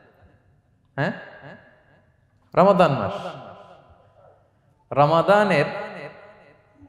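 A man speaks calmly into a microphone in a reverberant hall, in short bursts with pauses.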